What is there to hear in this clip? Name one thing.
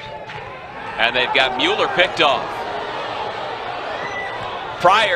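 A crowd murmurs and cheers in outdoor stands.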